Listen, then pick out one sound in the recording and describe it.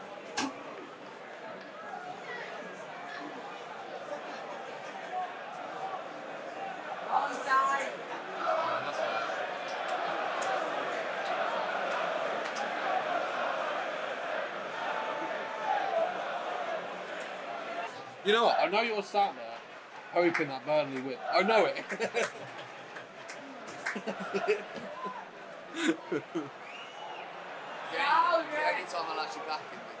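A crowd murmurs loudly in a large space.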